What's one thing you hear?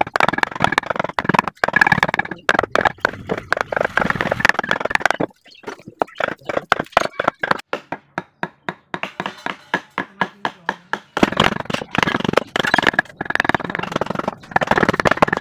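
A mallet taps rapidly on a chisel cutting into wood.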